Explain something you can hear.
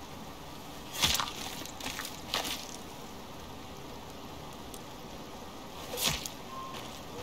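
A knife cuts wetly into a carcass.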